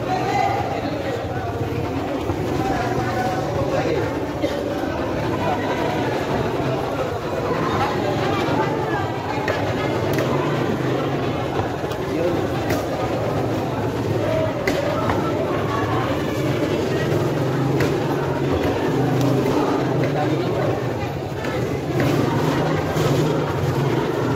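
Many people chatter in a busy, echoing hall.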